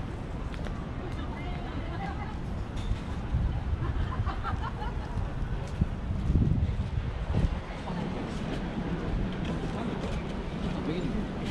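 Young men and women chat nearby as they walk.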